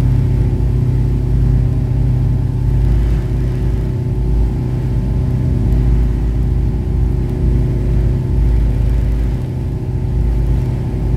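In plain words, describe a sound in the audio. Water splashes against a moving boat's hull.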